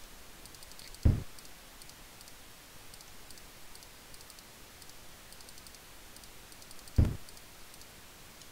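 A dull game thud sounds when a move is blocked by a wall.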